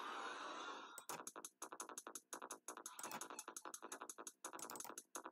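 Electronic game music plays with a fast, pulsing beat.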